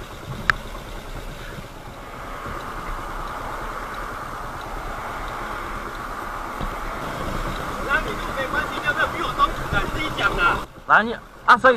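A motorcycle engine hums while riding.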